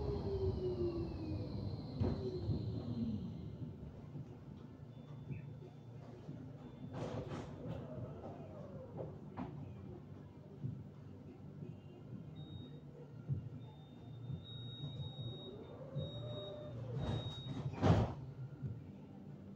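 A tram hums and rumbles steadily while riding on rails.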